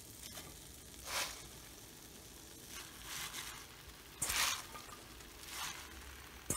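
Leaves rustle as they are dropped into a pan.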